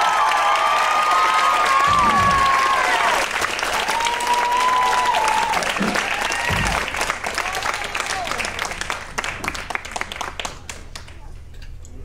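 An audience claps, cheers and whistles in a large hall.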